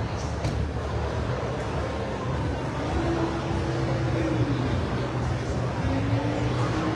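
A crowd of people murmurs and chatters in a large echoing hall.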